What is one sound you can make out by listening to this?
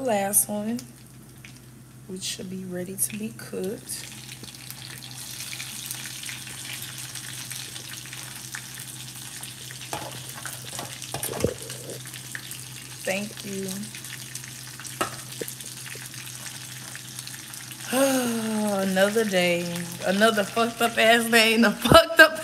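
A young woman talks casually and close up, with pauses.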